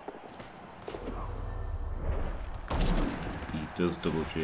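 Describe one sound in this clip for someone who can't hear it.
A heavy creature slams down with a loud thud.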